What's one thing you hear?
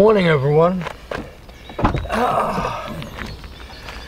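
A car's tailgate clicks open.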